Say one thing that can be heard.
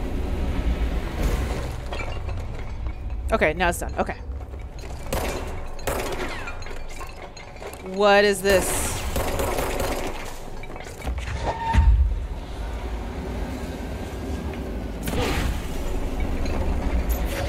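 Objects crash and clatter as they are hurled about.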